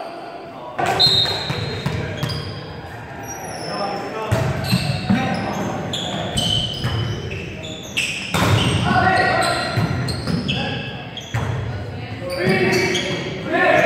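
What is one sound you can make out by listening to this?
Sneakers squeak on a gym floor.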